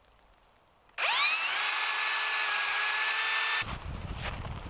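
A cordless drill whirs as it drives into a wooden post.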